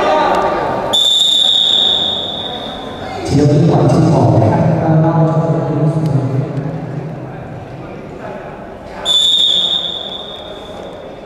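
A referee blows a sharp whistle.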